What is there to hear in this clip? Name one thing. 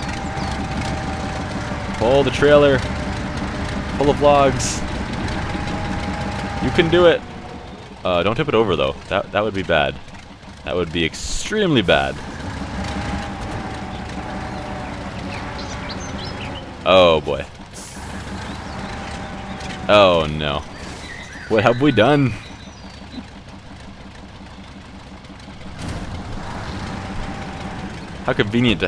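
A heavy truck engine rumbles and labours steadily.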